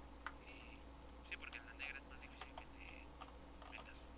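Blocks break apart with short crunching sounds.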